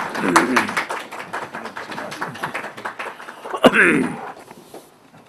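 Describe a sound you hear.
People applaud in a room.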